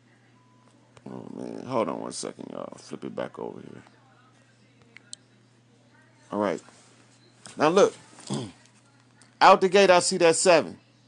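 A man speaks with animation close to a phone microphone.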